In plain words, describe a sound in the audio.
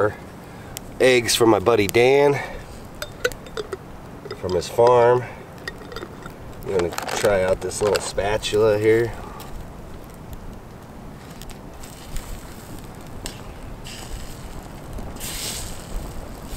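Eggs sizzle softly in a pan over a stove.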